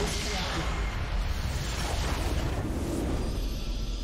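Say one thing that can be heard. Game spell effects burst and whoosh.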